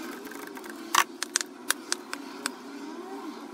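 Spark plug wires snap and click as hands pull them off.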